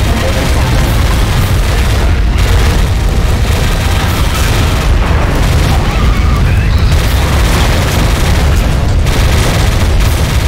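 Gunfire and explosions crack and boom.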